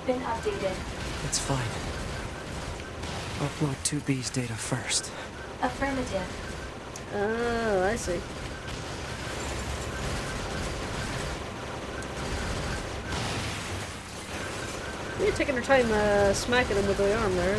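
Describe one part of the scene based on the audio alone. Explosions boom in a video game.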